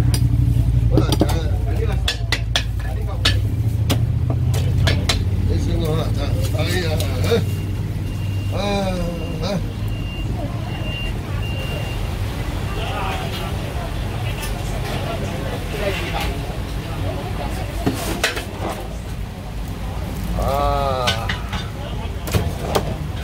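A cleaver chops sharply on a wooden board.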